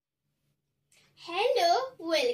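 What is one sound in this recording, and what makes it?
A young girl speaks clearly and animatedly close to a microphone.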